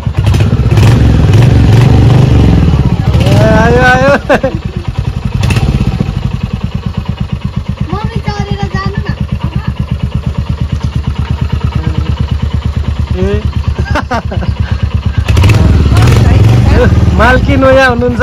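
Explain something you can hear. A motorcycle engine revs loudly.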